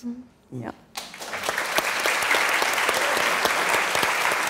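An audience applauds in a large room.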